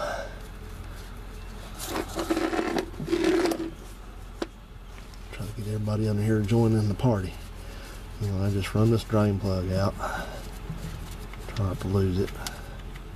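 A hand scrapes and clinks a tool against metal.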